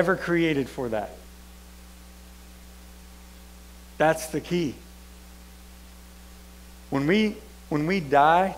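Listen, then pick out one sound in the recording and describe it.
A man speaks calmly into a microphone, with long pauses, in a large echoing room.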